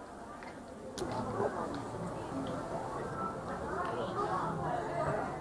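People chatter in an indoor hall.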